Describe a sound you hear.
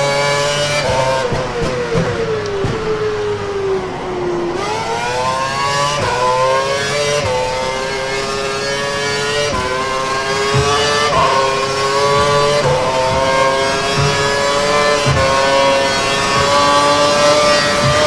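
A racing car engine screams, dropping in pitch under braking and rising again through the gears.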